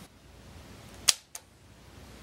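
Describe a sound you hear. A toggle switch flicks with a sharp click.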